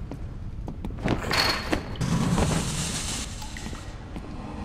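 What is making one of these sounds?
A heavy body climbs over and lands with a loud clatter on a metal grating.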